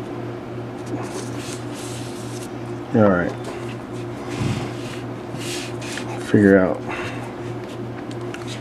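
Cord rustles and scrapes softly.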